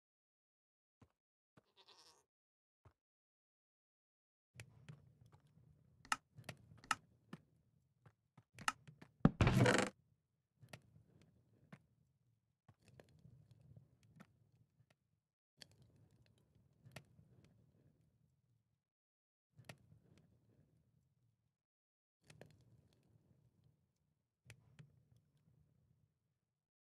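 Short game clicks sound as items are moved around.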